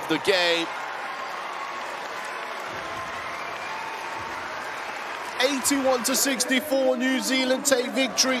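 A large crowd cheers and applauds in an echoing arena.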